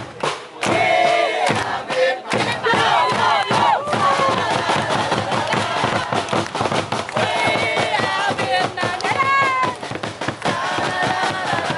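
A crowd of young men and women sing and chant loudly outdoors.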